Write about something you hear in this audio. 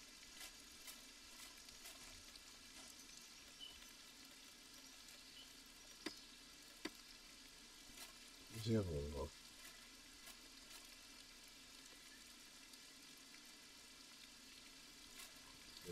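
Wind blows softly across open grassland.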